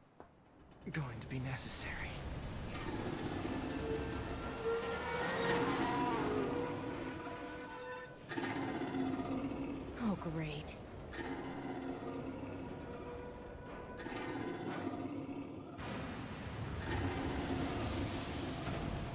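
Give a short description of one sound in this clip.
Huge machines burst up through water with a loud roaring rush.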